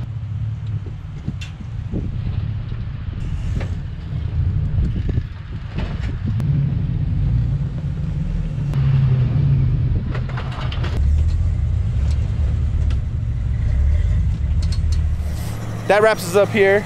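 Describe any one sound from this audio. Tyres crunch and scrape over rocks.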